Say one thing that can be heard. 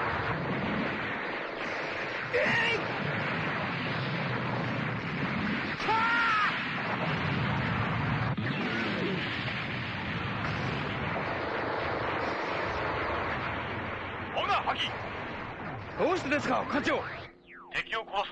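Loud explosions roar and rumble.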